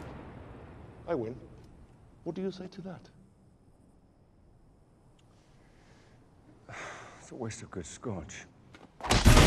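A man speaks calmly and quietly nearby.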